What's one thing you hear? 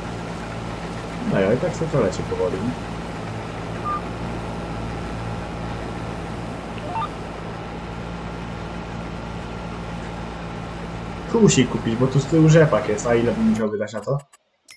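A combine harvester engine drones steadily while cutting crops.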